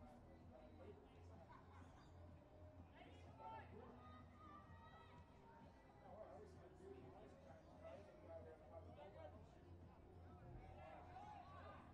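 Young men call out and talk to each other on an open field, heard from a distance.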